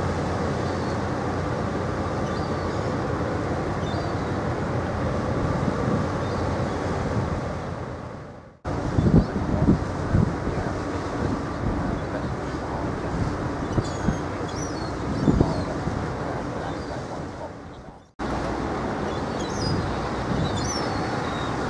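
Seagulls cry overhead.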